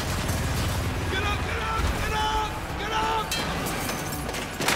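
A man shouts orders urgently.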